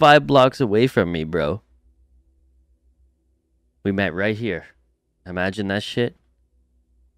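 A man talks calmly into a close microphone, in short bursts.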